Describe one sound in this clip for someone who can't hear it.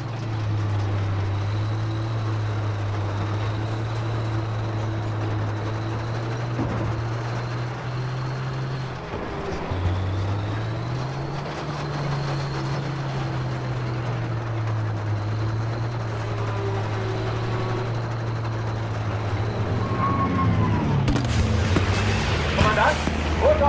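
Tank tracks clank and grind over rubble.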